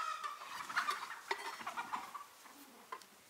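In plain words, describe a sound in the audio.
A wooden utensil scrapes and knocks against a metal pan.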